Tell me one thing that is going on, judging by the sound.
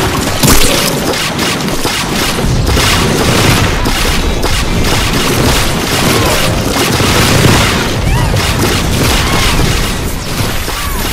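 Cartoonish game blasts, pops and zaps go off in quick succession.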